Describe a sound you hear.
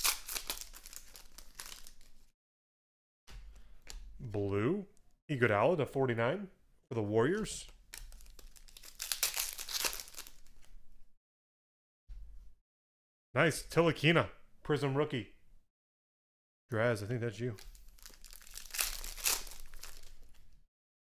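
Foil wrappers crinkle and tear as packs are opened by hand.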